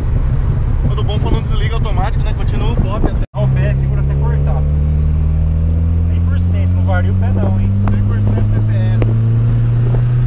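A man talks nearby over the engine noise.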